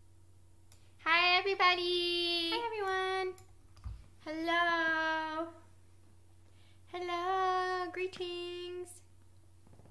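A young woman sings close by in long, held notes.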